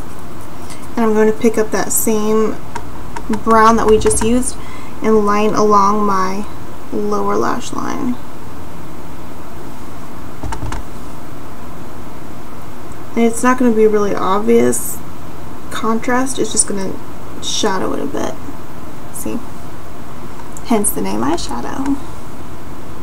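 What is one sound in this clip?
A young woman talks calmly and close to a microphone, in short bursts.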